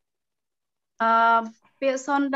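A second man speaks over an online call.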